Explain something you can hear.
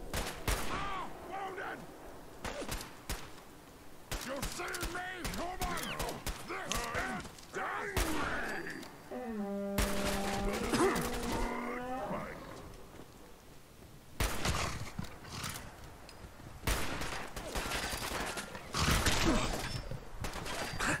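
Creatures growl and snarl close by.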